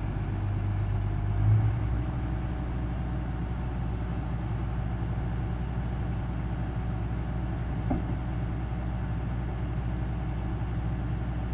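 A diesel combine harvester drones as it cuts wheat and approaches.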